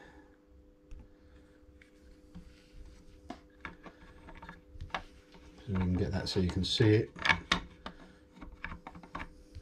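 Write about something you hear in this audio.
A small plastic device is handled with light clicks and knocks.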